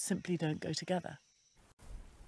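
A woman speaks calmly and close up.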